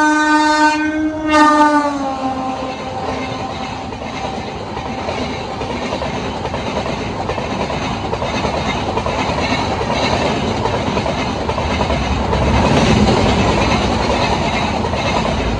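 A passenger train rumbles and clatters past close by on the tracks.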